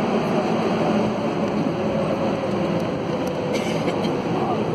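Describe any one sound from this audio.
A subway train slows as it enters an echoing station.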